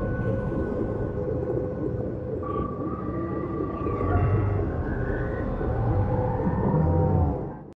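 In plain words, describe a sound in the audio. Deep water rumbles and churns in a low, steady drone.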